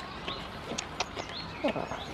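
A goat nibbles and chews at a hand up close.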